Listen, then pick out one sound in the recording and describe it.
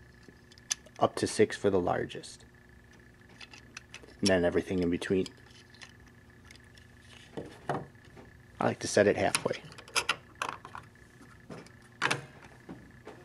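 Plastic parts click and knock together as they are handled.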